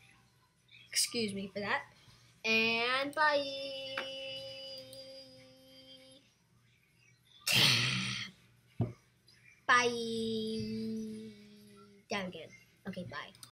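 A boy speaks with animation into a close microphone, stretching out some words in a sing-song way.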